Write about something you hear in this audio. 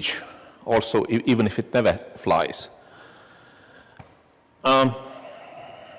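A man speaks through a microphone in an echoing room.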